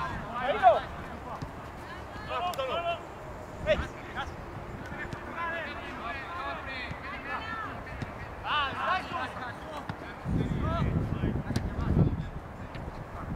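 Men shout and call out across an open outdoor field.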